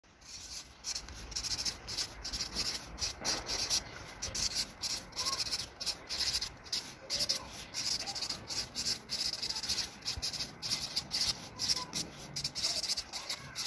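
A felt-tip marker squeaks and scratches on paper in quick strokes.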